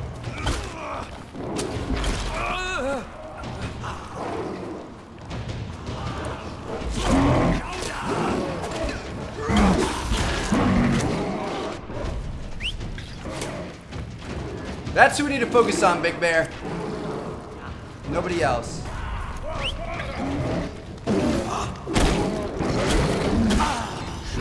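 Weapons strike with sharp thuds and impacts.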